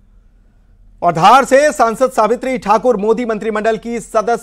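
A man reads out news calmly and clearly into a microphone.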